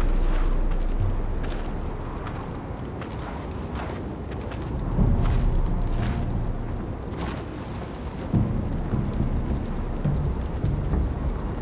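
A body slides and scrapes across the ground.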